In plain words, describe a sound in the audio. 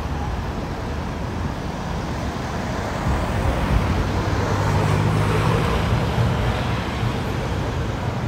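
Cars drive past on a nearby road.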